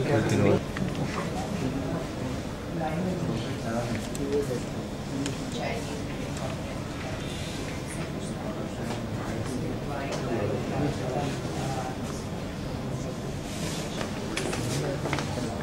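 A young woman speaks quietly and calmly nearby.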